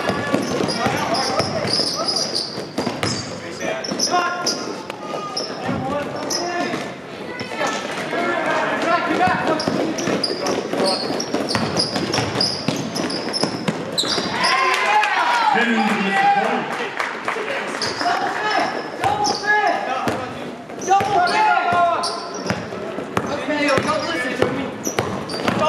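A basketball bounces on the floor with echoing thuds.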